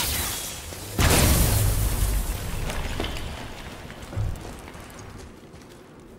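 A loud blast booms and rumbles, then slowly dies away.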